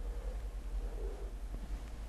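A man sips a drink from a cup.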